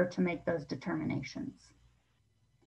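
A middle-aged woman speaks calmly over an online call.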